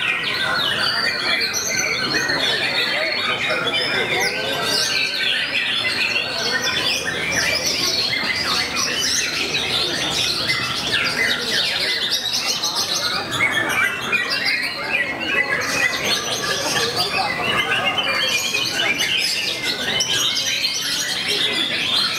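A songbird sings loud, rapid, warbling phrases close by.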